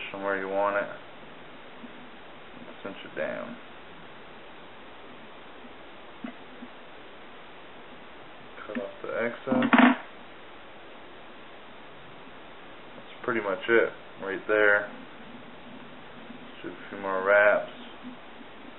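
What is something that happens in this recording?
A man speaks calmly in short phrases close by.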